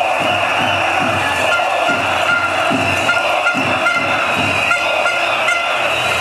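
A woman sings loudly close by.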